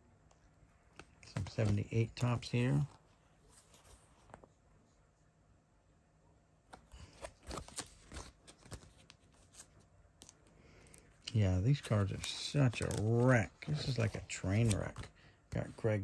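Plastic binder pages rustle and crinkle as they are turned.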